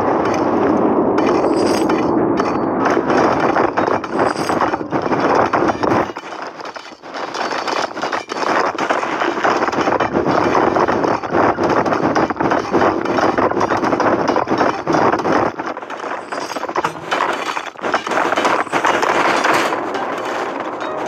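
Many pickaxes chip at gold ore with quick metallic clinks.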